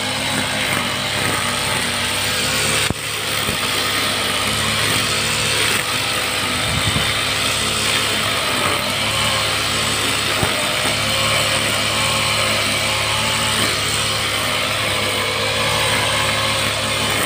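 A petrol string trimmer engine drones loudly and steadily close by.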